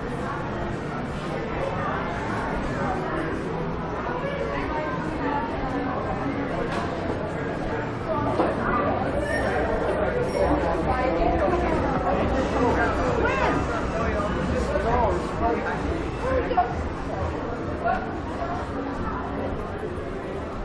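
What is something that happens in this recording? Men and women chatter in a busy street crowd outdoors, louder as passersby come close.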